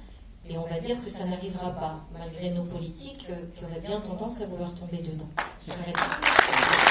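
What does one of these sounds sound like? A woman speaks calmly into a microphone over loudspeakers in a large hall.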